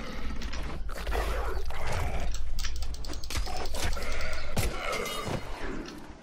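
Blows strike in a quick fight.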